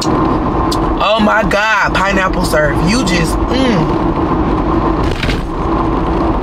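A car engine hums steadily with road noise.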